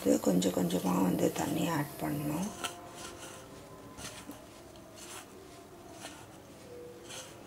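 Hands rub and squeeze crumbly dough in a metal bowl.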